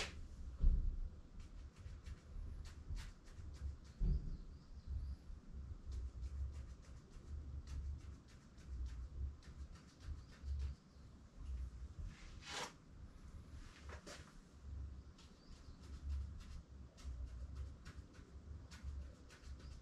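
A pen scratches in short strokes across paper.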